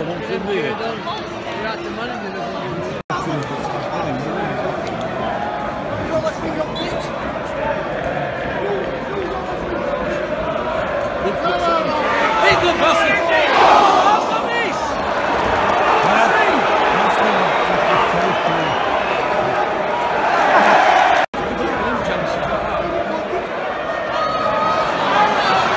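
A stadium crowd chatters and murmurs.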